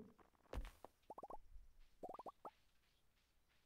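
A short bright jingle plays as a fish is caught.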